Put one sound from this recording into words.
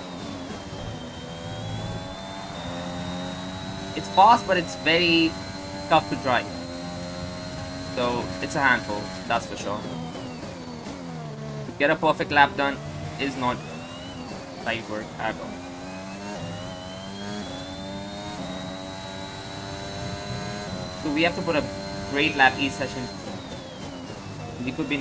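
A racing car engine screams at high revs, climbing in pitch and dropping with each gear change.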